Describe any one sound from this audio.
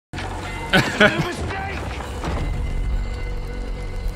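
Young men laugh close to microphones.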